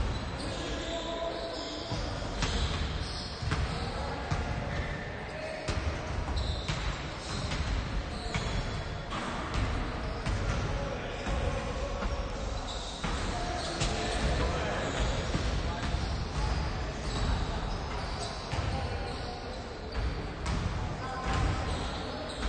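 A basketball bounces on a hardwood floor, echoing in a large hall.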